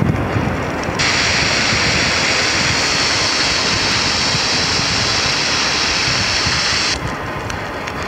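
Water sprays from a hose with a steady hiss.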